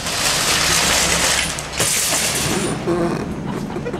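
A shopping cart crashes and tips over.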